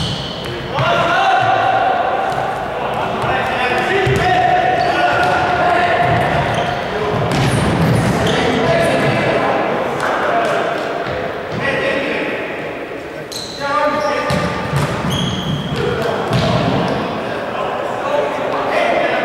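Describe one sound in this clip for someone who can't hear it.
Sports shoes squeak on a wooden floor.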